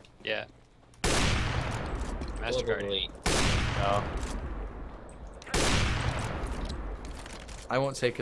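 A sniper rifle fires loud, booming shots that ring out.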